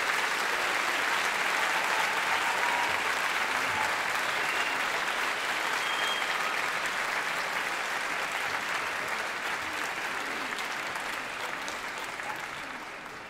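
A large crowd claps and cheers in a big hall, slowly fading toward the end.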